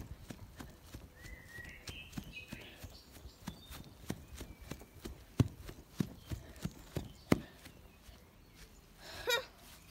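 Small plastic toy parts click and knock as they are handled.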